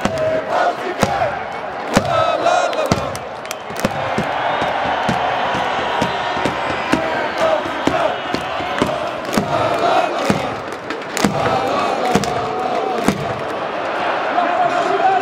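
Fans clap their hands sharply.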